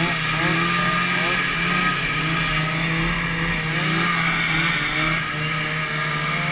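A snowmobile engine runs nearby.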